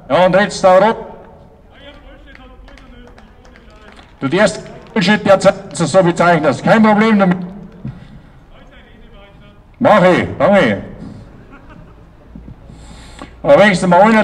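A man speaks loudly in short bursts through a microphone and loudspeaker outdoors.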